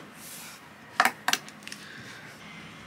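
A tablet is set down on a hard desk with soft knocks.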